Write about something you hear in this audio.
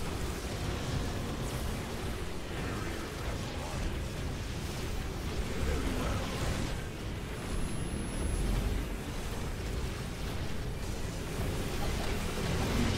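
Laser beams buzz and crackle in a game battle.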